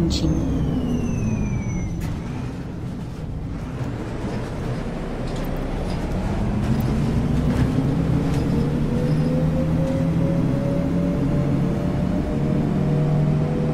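A bus engine hums steadily, dropping and then rising in pitch as the bus speeds up.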